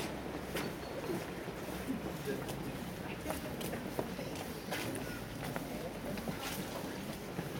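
A group of people chatter outdoors.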